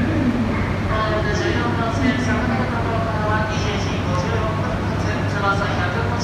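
A man makes an announcement through a microphone over a loudspeaker.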